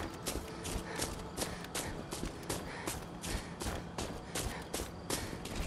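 Footsteps crunch quickly through snow and brush in a steady rhythm.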